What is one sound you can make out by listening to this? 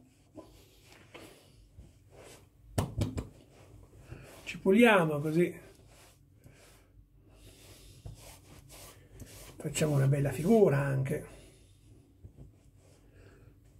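A towel rubs against a man's face.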